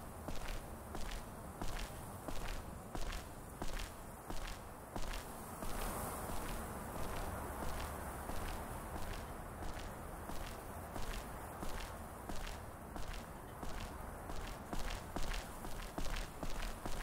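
Footsteps tread steadily on hard ground at a walking pace.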